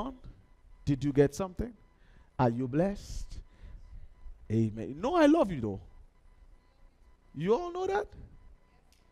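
A man speaks with animation through a headset microphone, in short bursts with pauses.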